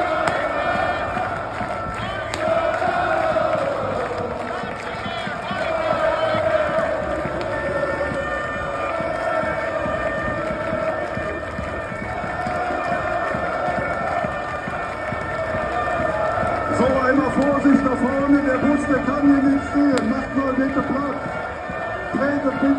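A huge crowd of fans chants and sings loudly outdoors.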